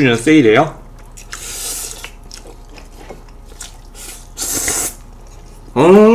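A young man slurps noodles and chews noisily.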